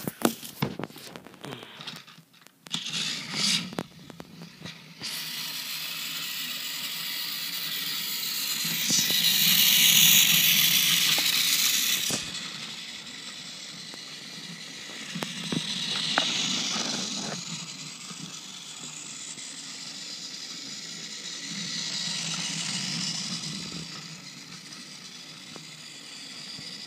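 Toy train wheels click over plastic track joints.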